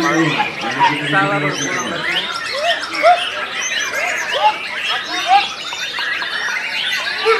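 A songbird sings a loud, varied song of rising and falling whistles.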